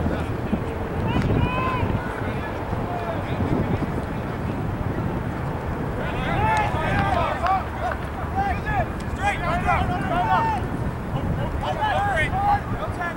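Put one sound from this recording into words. Spectators shout and cheer from the sideline at a distance.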